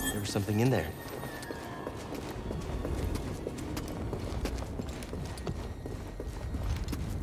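Footsteps run quickly over rock.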